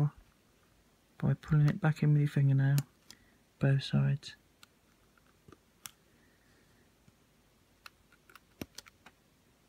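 Fingers handle a small plastic connector with faint clicks.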